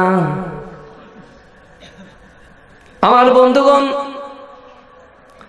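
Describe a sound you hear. A man chants melodiously into a microphone, echoing in a large space.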